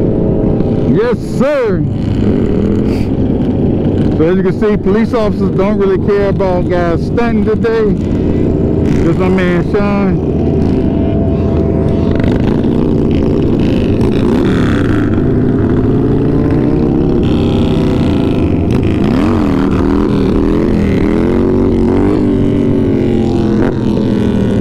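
Other motorcycle engines rev and rise in pitch as they pass.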